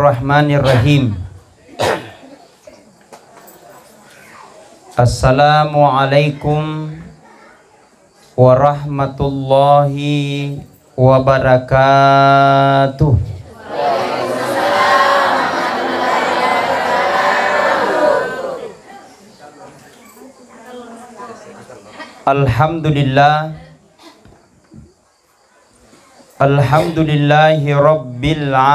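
A man speaks loudly into a microphone in short bursts, heard through loudspeakers.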